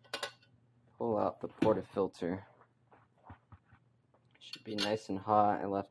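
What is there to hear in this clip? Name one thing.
A metal coffee basket clinks against metal.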